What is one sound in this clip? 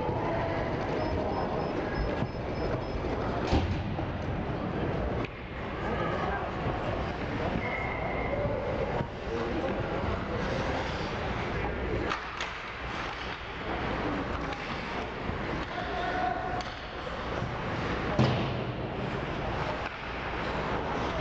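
Young players call out to each other, echoing in a large rink.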